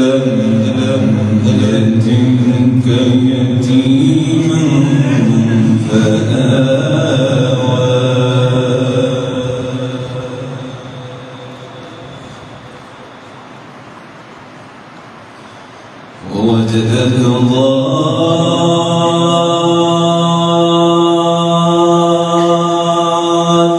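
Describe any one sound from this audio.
A man chants in long, drawn-out phrases through a loudspeaker, with a pause in the middle.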